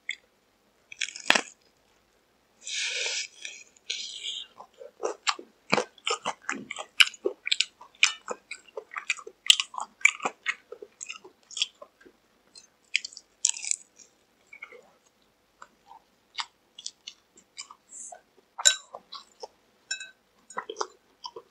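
A young man bites into crispy fried chicken with loud crunches.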